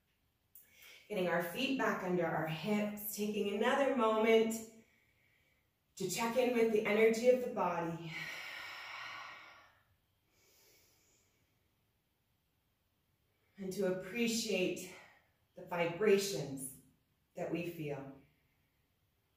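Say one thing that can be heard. A woman speaks calmly and clearly into a nearby microphone, pausing between phrases.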